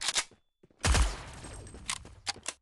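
A rifle fires a short burst of loud shots.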